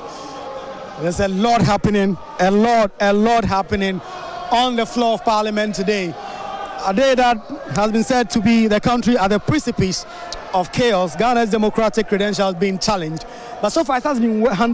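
A crowd of men and women sings and chants loudly.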